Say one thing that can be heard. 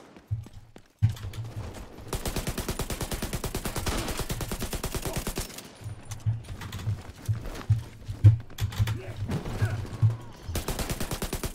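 Heavy explosions boom with deep thuds.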